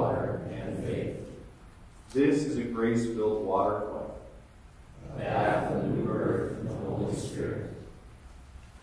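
A man reads aloud through a microphone in a large echoing hall.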